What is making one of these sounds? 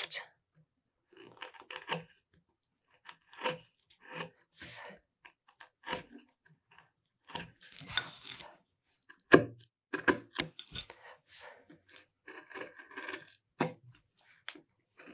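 A chisel cuts into wood with short scraping and clicking strokes.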